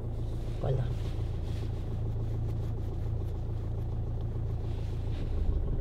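A car engine idles steadily close by.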